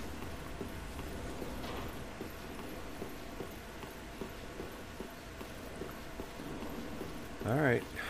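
Footsteps scuff on stone.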